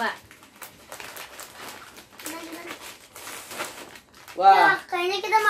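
Scissors snip through plastic snack packets.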